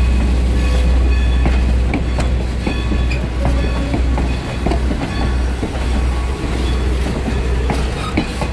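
Wheels squeal faintly on the rails.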